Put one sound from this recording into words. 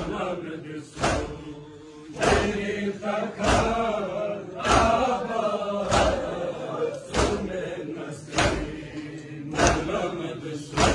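A crowd of men beat their chests in loud rhythmic slaps.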